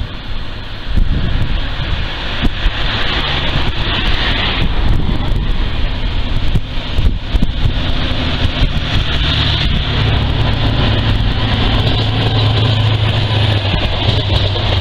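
A diesel train approaches with a deep engine roar and passes close by.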